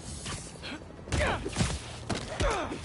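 Heavy blows thud in a scuffle.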